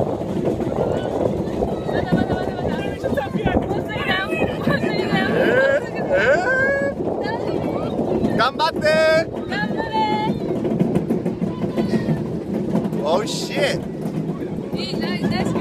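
A young woman laughs and shrieks with delight.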